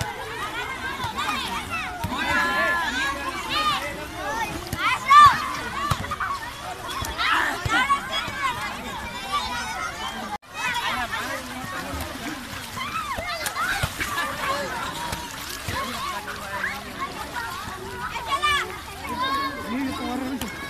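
Water splashes as children move through a pool.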